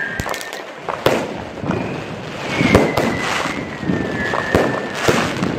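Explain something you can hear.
Fireworks whistle as they shoot up.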